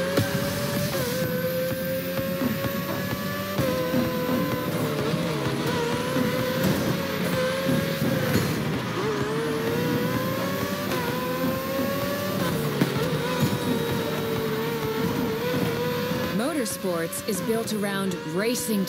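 A racing car engine screams at high revs, rising and dropping in pitch as gears change.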